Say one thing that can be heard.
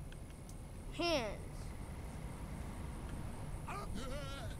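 A boy speaks excitedly into a nearby microphone.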